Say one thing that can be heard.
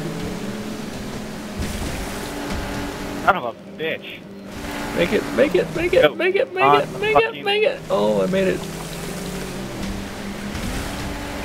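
Water splashes and sprays against a speeding boat's hull.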